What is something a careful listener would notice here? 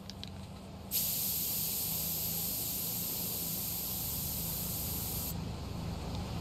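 A spray can hisses steadily as paint sprays out.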